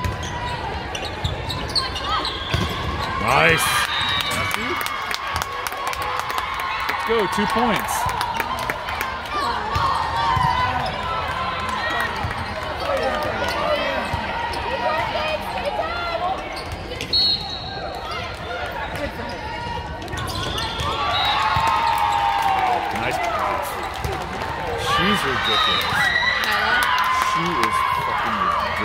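Young women players call out and cheer in a large echoing hall.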